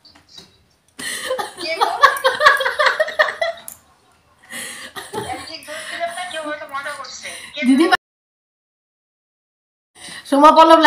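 A young woman talks on a phone with animation, close by.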